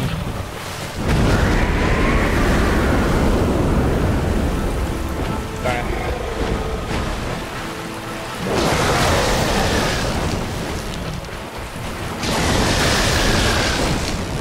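A large winged creature crashes down into shallow water with a loud splash.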